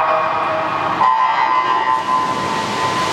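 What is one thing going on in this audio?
A swimmer dives into the water with a splash.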